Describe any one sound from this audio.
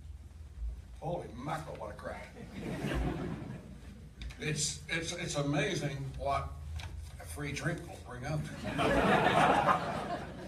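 A second man speaks into a microphone at the lectern.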